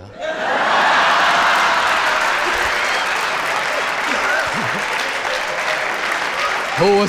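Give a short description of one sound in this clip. A studio audience laughs.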